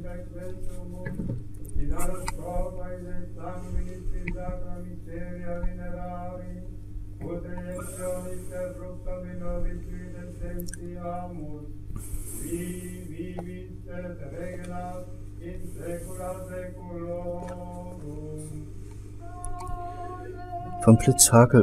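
An elderly man chants slowly.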